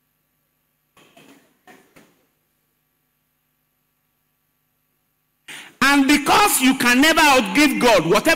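A man preaches with fervour through a microphone and loudspeakers, his voice rising into a loud, drawn-out, sung cry.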